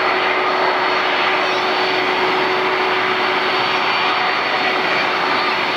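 The turbofan engines of a Boeing 747 whine and roar while it taxis.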